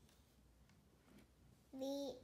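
A small hand pats and slides over a board book.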